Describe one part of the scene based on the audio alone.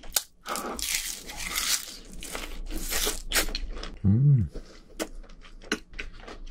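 A young man chews crunchy food loudly and wetly, close to a microphone.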